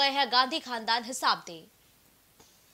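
A woman speaks loudly into a microphone.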